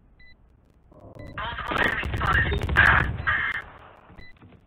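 A submachine gun fires a short burst.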